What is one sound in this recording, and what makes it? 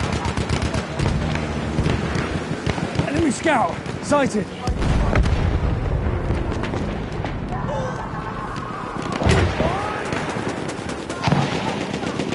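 Explosions boom with deep, heavy thuds.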